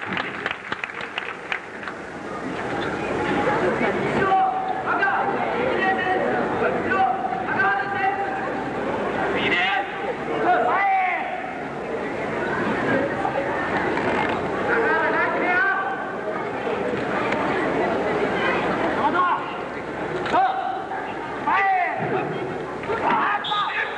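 Young men shout sharply now and then.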